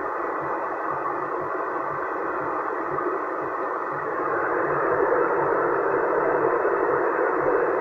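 Radio static hisses steadily from a loudspeaker.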